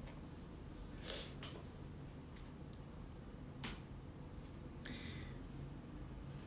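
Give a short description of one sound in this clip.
A young man speaks quietly and close by, in short bursts.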